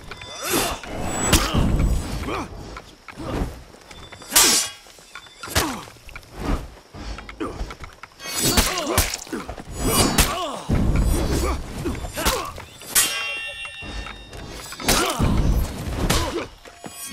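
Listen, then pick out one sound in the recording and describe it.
Swords clash and clang in quick bursts.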